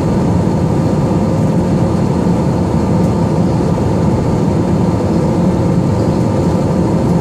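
A jet engine roars steadily, heard from inside an airplane cabin.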